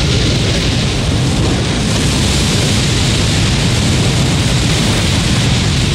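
Fire roars in a great burst of flame.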